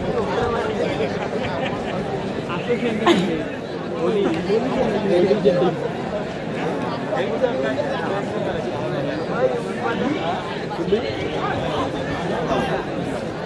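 A large crowd cheers and chatters loudly in a big echoing hall.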